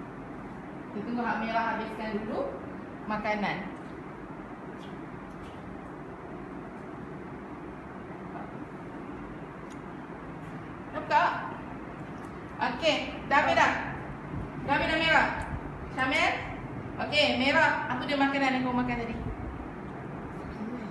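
A woman speaks to children nearby.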